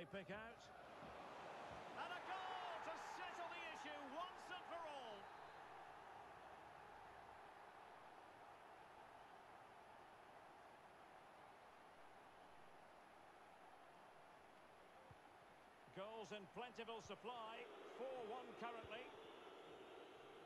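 A large stadium crowd roars and cheers, then settles into a steady murmur.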